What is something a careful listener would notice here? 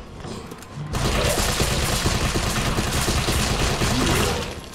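A rifle fires rapidly in loud bursts.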